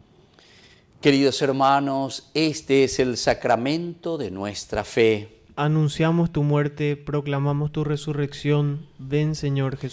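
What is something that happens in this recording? A man chants loudly and steadily through a microphone.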